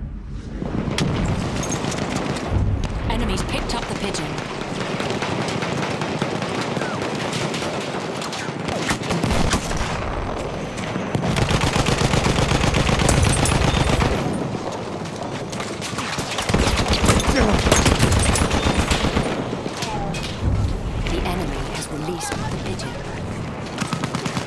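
A machine gun fires rapid bursts at close range.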